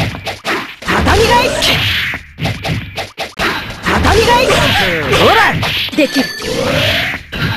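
Fighting game hits land with sharp smacks.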